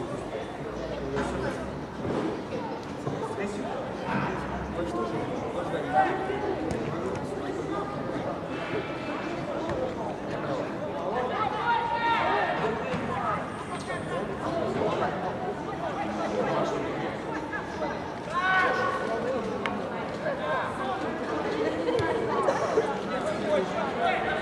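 Young men shout and argue loudly outdoors.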